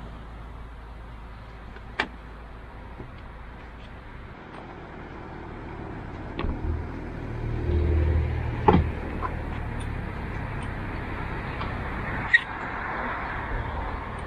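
Metal bicycle parts clink and knock as a bike is lifted out of a van.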